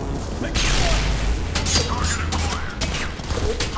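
A heavy robot's metal body clanks and thuds.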